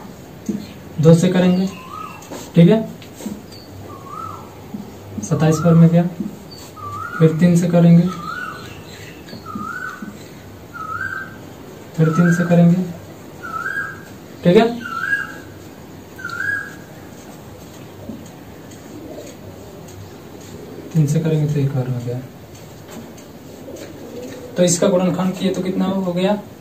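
A young man speaks calmly in short bursts, close by.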